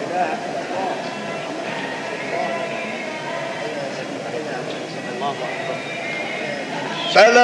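A man chants in a sustained, melodic voice through a recording.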